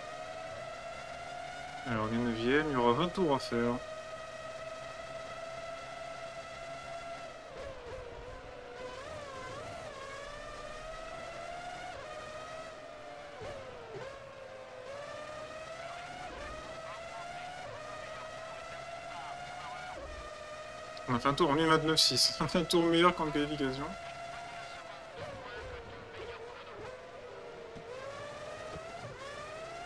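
A racing car engine whines at high revs, rising and falling as gears shift.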